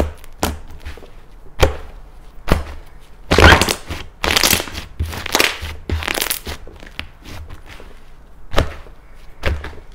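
Sticky slime stretches with wet crackling pops.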